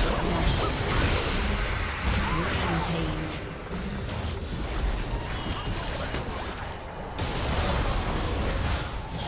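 Magic blasts and impacts crackle and burst in a fast video game battle.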